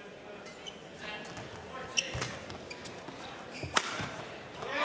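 A racket strikes a shuttlecock with sharp smacks.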